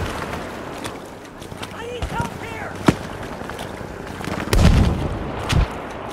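Water splashes and sloshes as someone wades.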